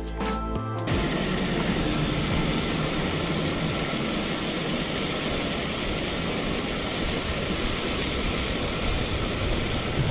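A fishing reel whirs softly as its handle is turned.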